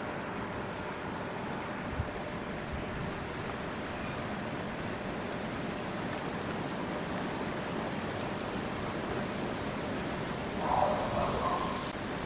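Chimpanzees walk and rustle through dry grass.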